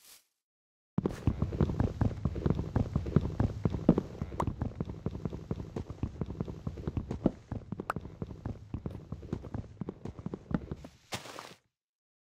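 Rapid, steady knocking of wood being chopped.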